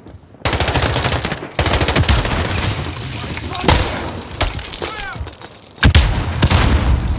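A rifle fires rapid bursts, loud and close.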